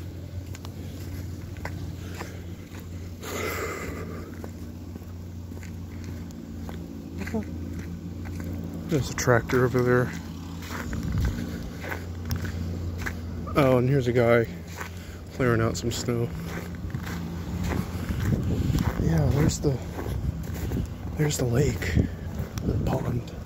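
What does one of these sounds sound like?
Footsteps crunch on snowy pavement.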